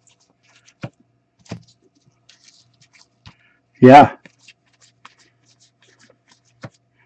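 Trading cards flick and slide against each other in hands.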